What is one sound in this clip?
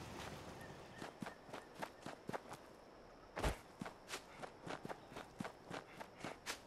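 Footsteps crunch on dry ground at a steady walking pace.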